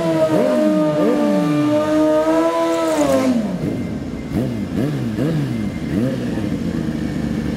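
A motorcycle engine revs hard and loud.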